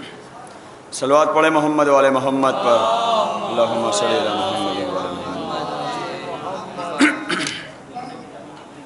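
A man chants in a melodic, drawn-out voice through a microphone.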